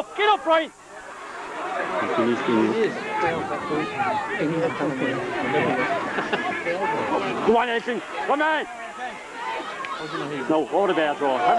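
A large outdoor crowd shouts and cheers excitedly.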